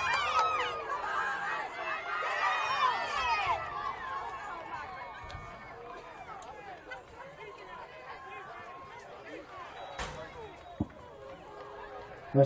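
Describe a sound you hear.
A crowd of young people cheers and shouts outdoors, loud at first and then dying down to scattered calls.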